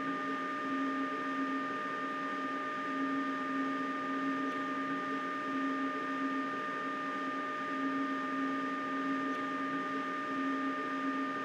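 An electric train's motors hum steadily.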